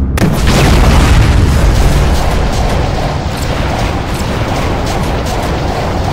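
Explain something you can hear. Laser beams zap and crackle.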